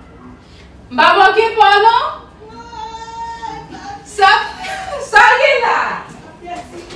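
A young woman shouts and laughs loudly nearby.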